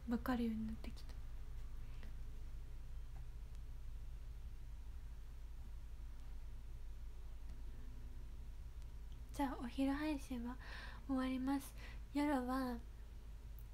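A young woman speaks close to a microphone in a high, animated voice.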